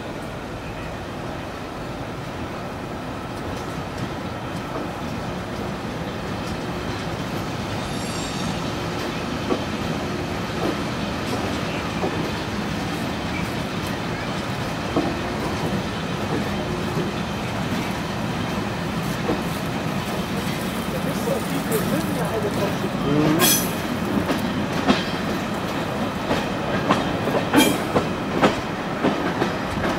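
A train rumbles steadily along the tracks, heard from an open window.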